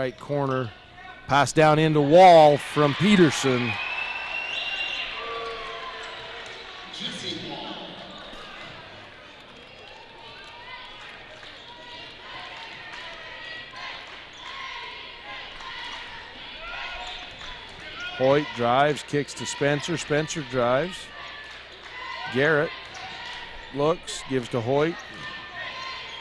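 A crowd cheers and shouts loudly in a large echoing hall.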